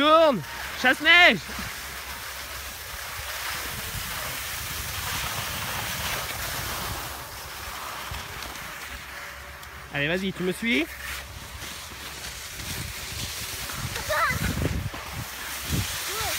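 Skis scrape and hiss over snow.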